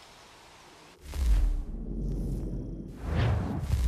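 A deep whoosh sounds.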